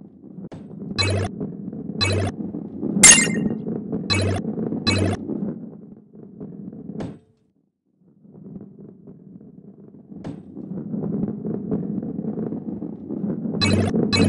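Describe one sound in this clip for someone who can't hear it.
Bright chimes ring out as coins are collected.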